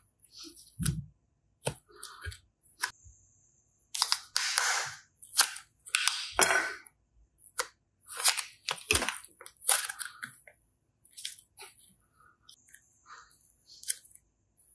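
Soft clay squishes and squelches between fingers.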